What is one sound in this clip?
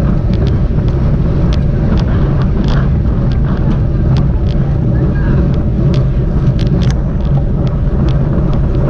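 A bicycle's freewheel clicks rapidly.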